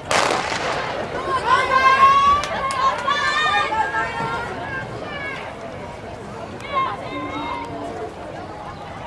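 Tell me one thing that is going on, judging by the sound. Spectators shout and cheer outdoors.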